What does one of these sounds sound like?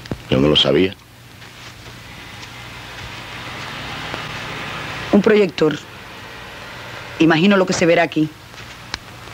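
A woman speaks in short phrases.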